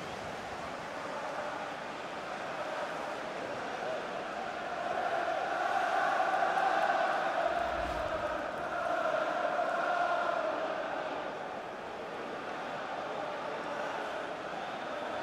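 A large stadium crowd roars and cheers, swelling and then fading.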